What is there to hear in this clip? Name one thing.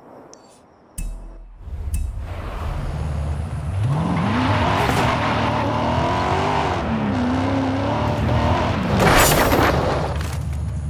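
A sports car engine revs and roars as it speeds up.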